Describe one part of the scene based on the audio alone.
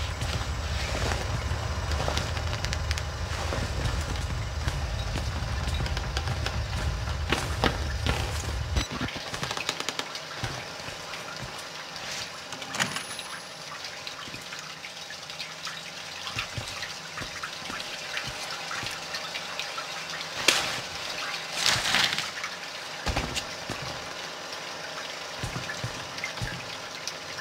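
Footsteps thud on creaking wooden floorboards.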